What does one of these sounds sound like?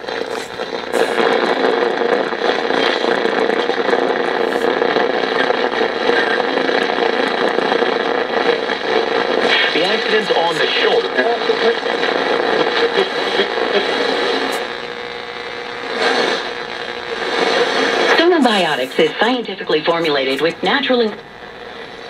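A radio whines and warbles as its dial is turned between stations.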